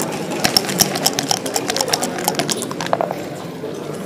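Dice rattle and tumble across a board.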